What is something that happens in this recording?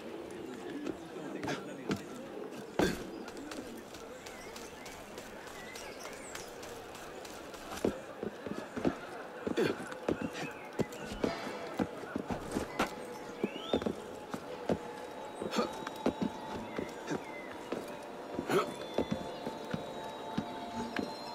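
Hands and feet grip and scrape on stone as a figure climbs.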